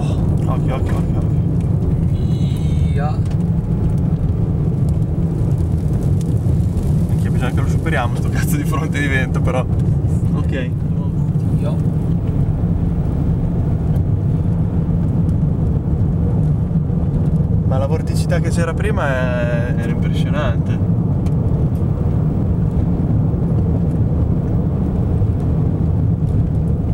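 Strong wind roars and buffets against a car.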